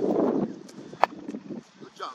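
A cricket bat strikes a leather cricket ball with a sharp crack.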